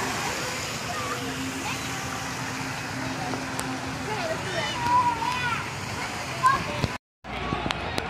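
Young girls talk and call out nearby outdoors.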